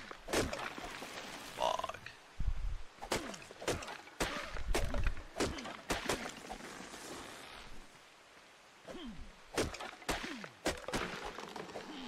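A hatchet chops into a tree trunk with sharp, repeated thuds.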